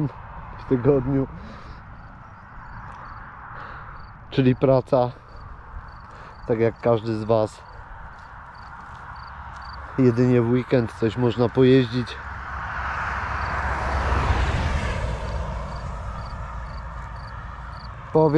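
Wind rushes past the microphone outdoors.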